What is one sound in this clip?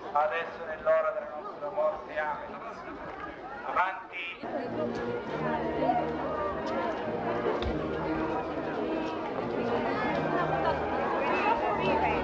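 A crowd of men and women talks and chatters nearby outdoors.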